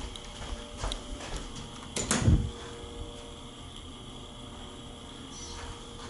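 A lift call button clicks once as it is pressed.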